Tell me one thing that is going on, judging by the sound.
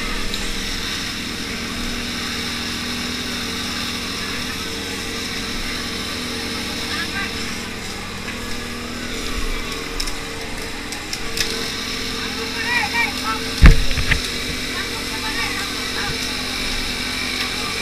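A large fire crackles and roars.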